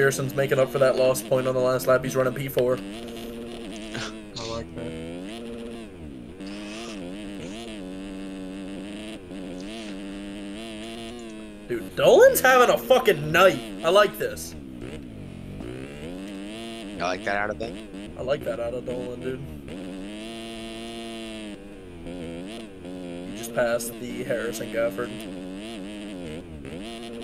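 A dirt bike engine revs and whines up and down as it races.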